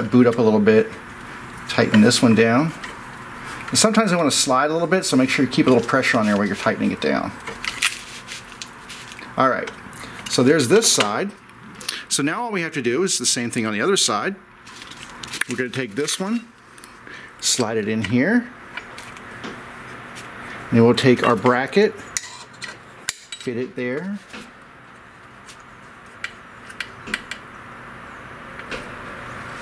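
Hands fiddle with a small metal part on a machine, with light clicks and taps.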